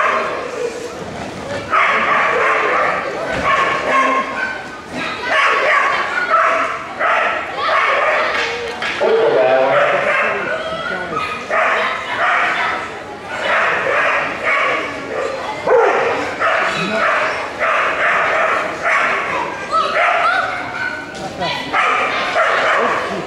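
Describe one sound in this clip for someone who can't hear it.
A woman calls out commands to a dog with animation.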